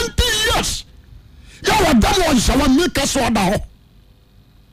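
A man speaks with animation into a microphone, close by.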